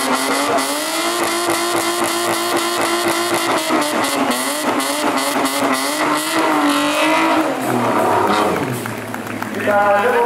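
Tyres screech on asphalt during a drift.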